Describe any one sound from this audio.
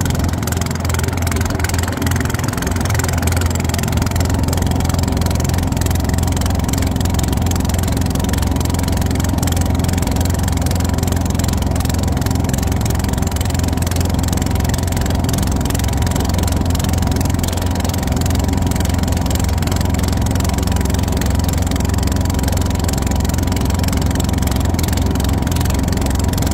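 A boat engine drones loudly and steadily.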